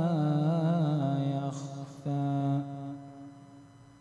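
A man chants a melodic recitation into a microphone, his voice ringing in a reverberant room.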